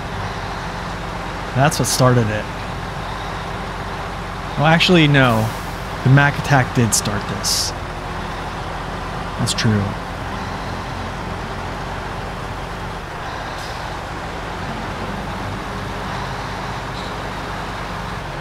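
A truck engine rumbles steadily as a truck drives slowly.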